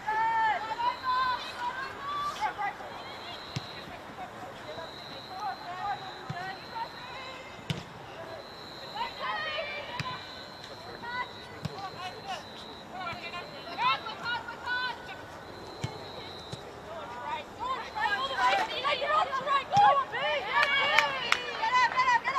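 Women players shout to each other across an open field.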